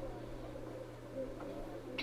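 A roulette ball rolls and rattles around a spinning wheel.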